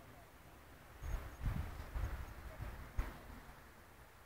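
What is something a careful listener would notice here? Wind gusts outdoors.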